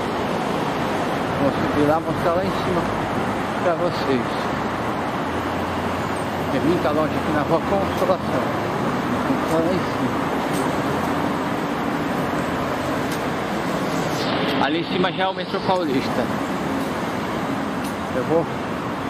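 Traffic rumbles steadily along a busy city street outdoors.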